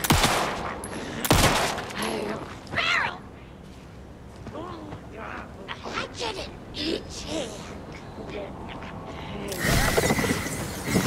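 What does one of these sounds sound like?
A pistol fires several loud shots.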